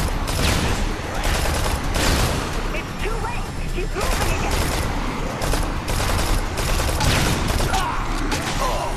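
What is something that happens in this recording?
Gunshots fire rapidly in loud bursts.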